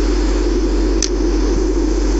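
A flint and steel strikes with a short scrape.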